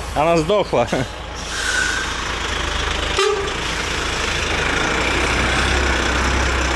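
A truck engine idles nearby with a low, steady rumble.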